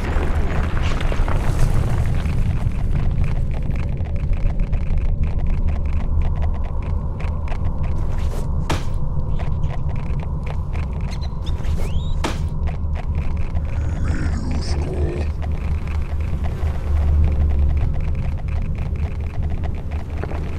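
Footsteps scrape softly on a stone floor.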